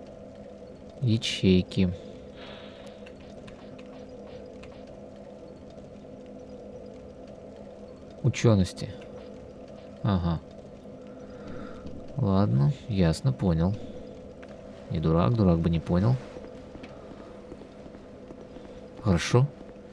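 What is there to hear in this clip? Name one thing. A young man talks in short bursts close to a microphone.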